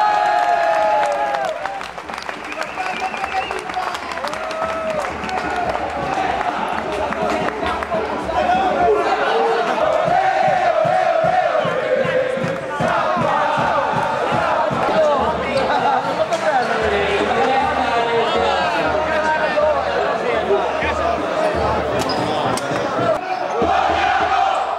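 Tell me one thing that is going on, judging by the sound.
A large crowd chants and sings loudly in an echoing hall.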